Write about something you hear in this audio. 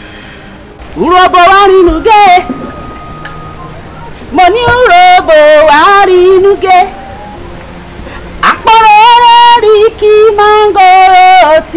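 A woman sings loudly in a wavering voice outdoors.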